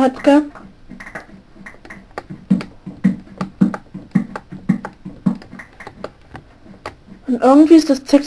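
Small items pop in a steady, rapid series.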